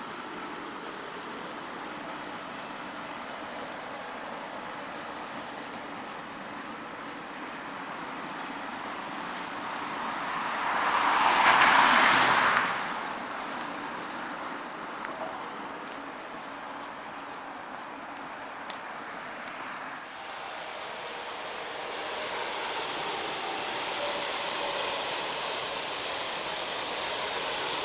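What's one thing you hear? Road traffic rumbles steadily nearby outdoors.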